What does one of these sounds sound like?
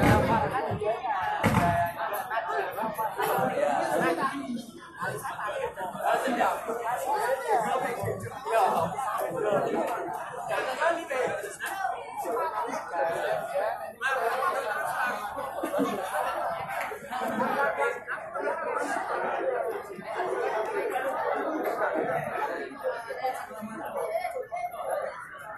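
A group of men chant together in unison, amplified through a microphone.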